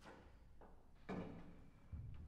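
A piano lid creaks and thumps as it is raised.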